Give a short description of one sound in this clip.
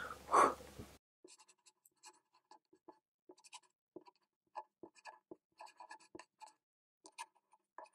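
A marker pen squeaks across paper.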